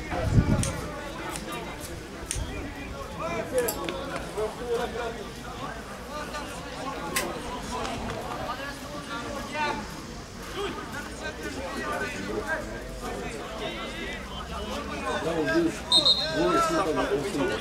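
Men shout and call out across an open outdoor pitch.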